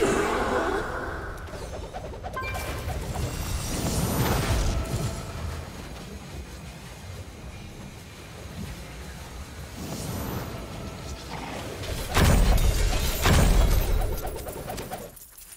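Magic spells and weapon hits clash and burst in loud waves.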